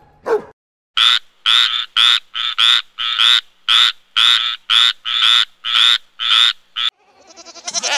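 A frog croaks in a rapid series of short calls.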